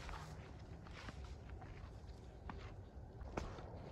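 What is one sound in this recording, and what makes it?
Footsteps swish through tall grass.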